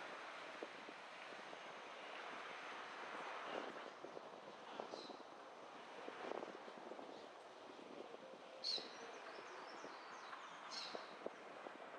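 A car drives steadily along a street, its tyres humming on the road.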